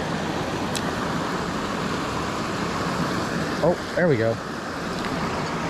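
Water rushes steadily over a low weir nearby.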